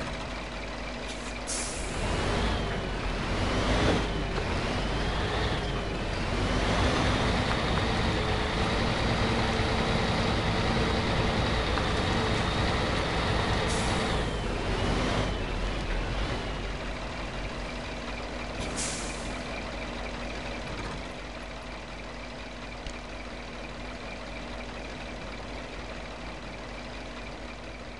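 A truck engine rumbles and strains as it drives over rough ground.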